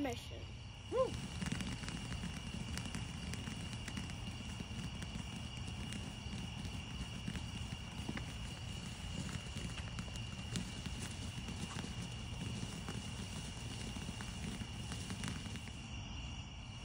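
A firework fountain hisses and crackles loudly.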